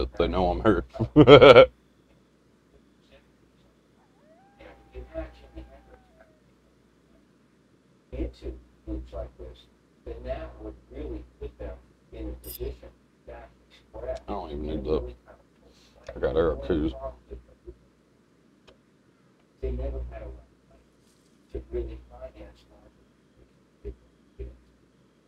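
A young man talks calmly into a close microphone, in bursts with pauses.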